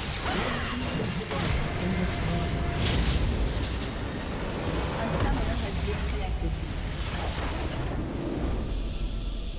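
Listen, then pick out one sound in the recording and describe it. Game battle effects crash, zap and boom in quick succession.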